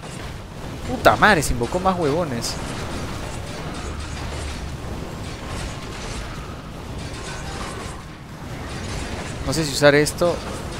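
A young man speaks with animation into a microphone.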